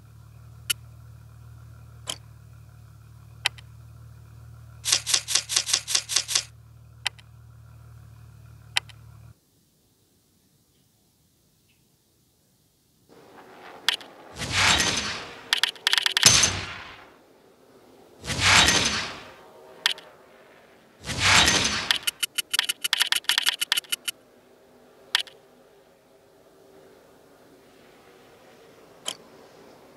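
Menu clicks tick sharply now and then.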